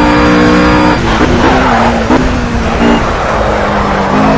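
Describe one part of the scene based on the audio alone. A racing car engine blips and drops in pitch as the car downshifts under braking.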